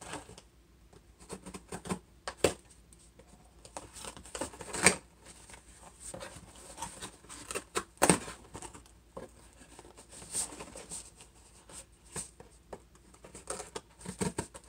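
Cardboard rustles and crinkles as a box is handled.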